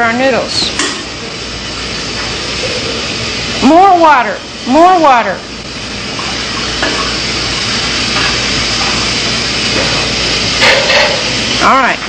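Water runs from a tap in a steady splashing stream.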